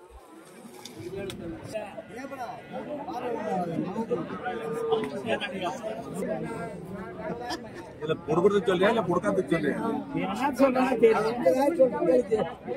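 Several men talk over one another with animation close by.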